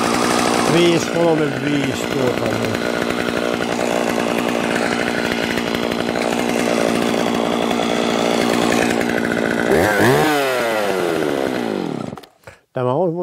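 A chainsaw engine runs loudly and revs up.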